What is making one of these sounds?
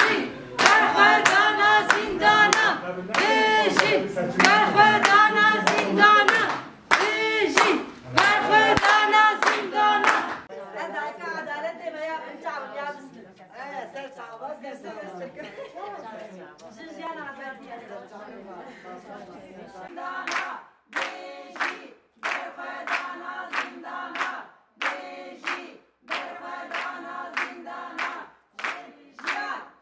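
Women clap their hands in rhythm.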